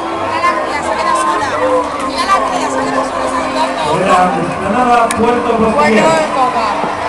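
A large crowd sings along loudly in a vast open arena.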